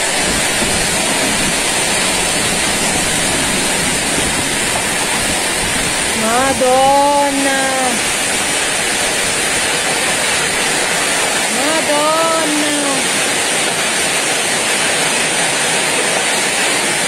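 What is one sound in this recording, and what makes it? Heavy rain pours and hisses.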